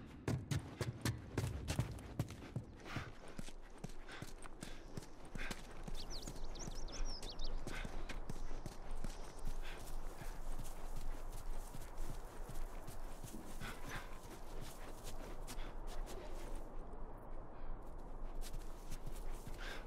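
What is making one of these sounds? Footsteps crunch over gravel and grass.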